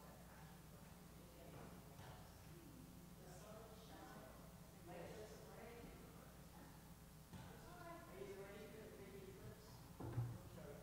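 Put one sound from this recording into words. Elderly men and women talk quietly among themselves in an echoing room.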